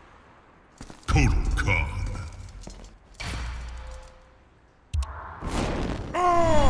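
A deep booming rumble sounds as a selection is confirmed.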